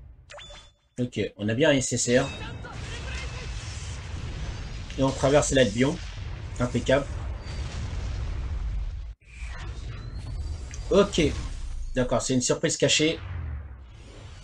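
A man speaks excitedly into a microphone.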